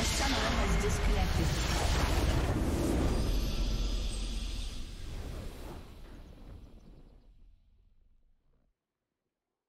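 A triumphant fanfare swells and fades away.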